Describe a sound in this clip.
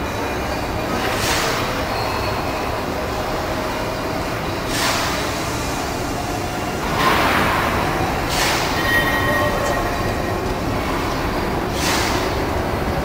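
Steam hisses in bursts from a locomotive in a large echoing hall.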